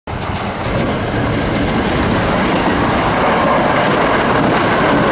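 A train rumbles past on the tracks nearby, growing louder.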